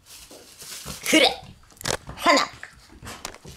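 A puppy yelps and whines.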